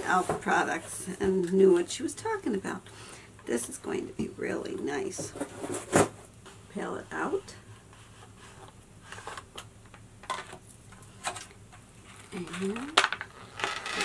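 An elderly woman talks calmly and close to a microphone.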